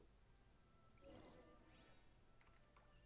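A bright magical chime rings out with a rising shimmer.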